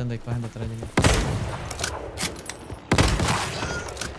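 A rifle fires loud shots that boom and echo.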